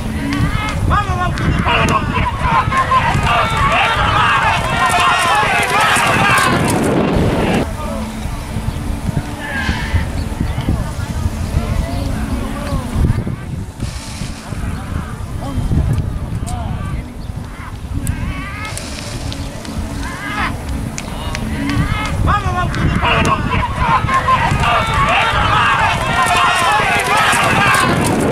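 A crowd of spectators shouts and cheers excitedly.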